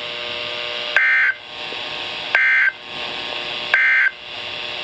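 A weather radio sounds three loud, high electronic beeps.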